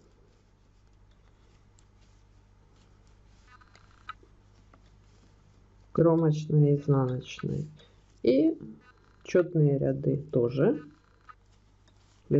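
Knitting needles click and tap softly against each other.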